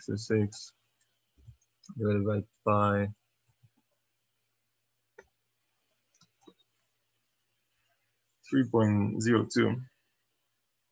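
A young man speaks calmly and close into a microphone, in short phrases with pauses.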